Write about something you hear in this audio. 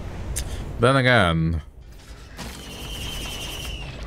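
A game teleporter charges up with a rising electronic whoosh.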